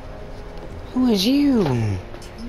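A young woman speaks in a hushed, tense voice close by.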